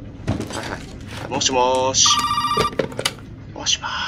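A telephone handset is lifted with a clatter.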